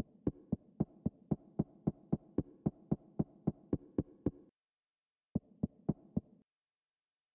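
Footsteps tap in a quick, even rhythm.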